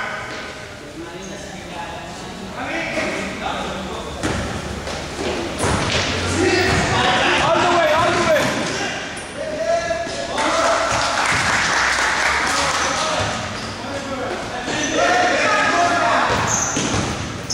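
Sneakers squeak on the court floor.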